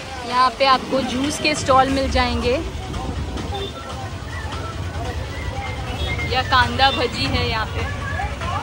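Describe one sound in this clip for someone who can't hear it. Nearby people talk with animation on a busy street.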